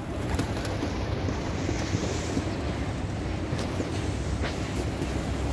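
Pigeon wings flap as a bird takes off.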